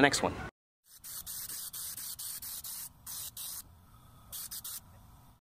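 A spray gun hisses in short bursts.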